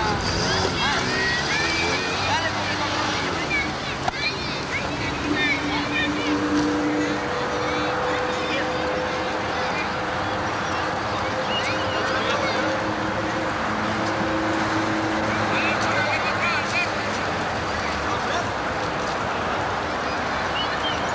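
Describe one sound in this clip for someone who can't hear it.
A small car's engine runs nearby.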